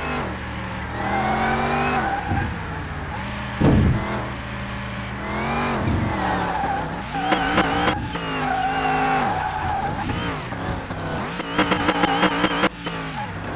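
Tyres screech as a car slides through corners.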